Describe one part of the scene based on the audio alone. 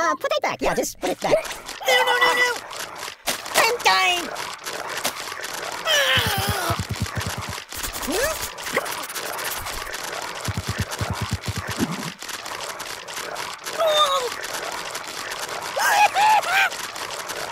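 Quick cartoonish thumps of blows land over and over on a stuffed doll.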